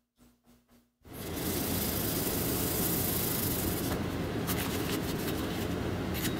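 Plastic sheeting rustles under a gloved hand.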